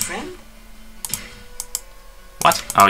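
A game menu gives short clicks as the selection moves.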